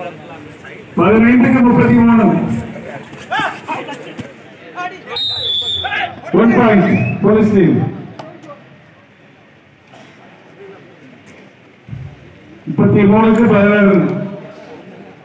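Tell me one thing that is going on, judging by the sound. Young men shout loudly on the court.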